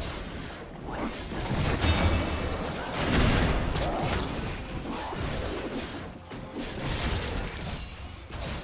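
Magic blasts and weapon hits crackle and thud in a fast fight.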